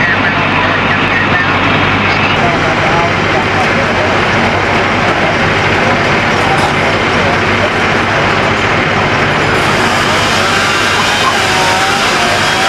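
A heavy engine idles with a steady rumble nearby.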